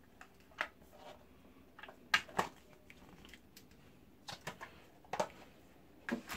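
A plastic case clicks and snaps as hands open and close it.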